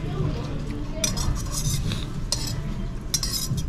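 A spoon scrapes in a bowl.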